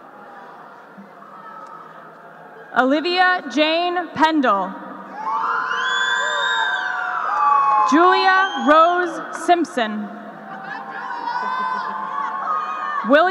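A woman announces names through a loudspeaker in a large echoing hall.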